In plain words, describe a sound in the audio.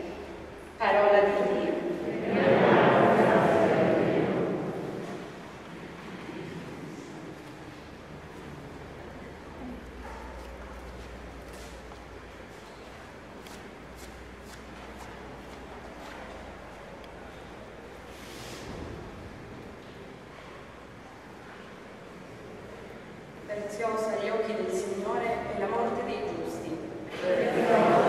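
A woman speaks calmly into a microphone, heard through loudspeakers in a large echoing hall.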